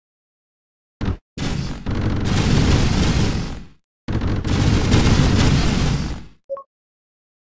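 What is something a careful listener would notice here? A loud fiery roar rushes steadily.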